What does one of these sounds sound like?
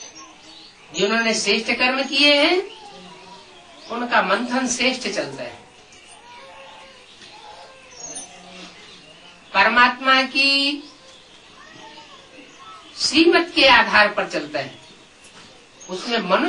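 An elderly man speaks calmly and close by, in bursts with pauses.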